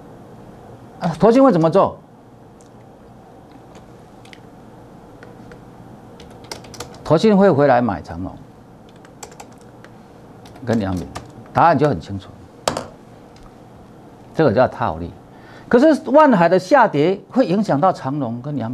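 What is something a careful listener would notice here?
A middle-aged man speaks with animation into a close microphone, in short bursts.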